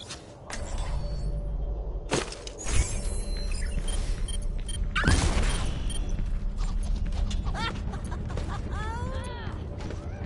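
Futuristic game sound effects whoosh and clatter throughout.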